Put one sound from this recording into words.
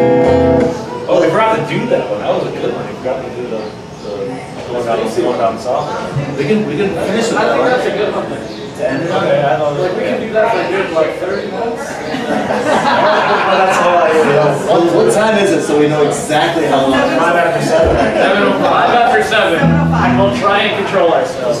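Electric guitars play a loud rock tune.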